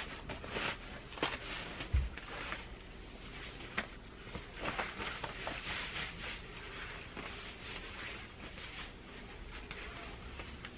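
Clothes rustle and swish as jeans are pulled on.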